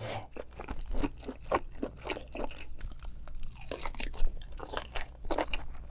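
A young man chews and slurps wetly, close to a microphone.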